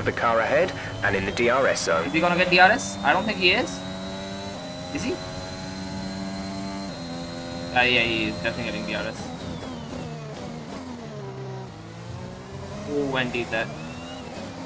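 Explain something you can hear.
A racing car engine screams at high revs, shifting gears and dropping in pitch under braking.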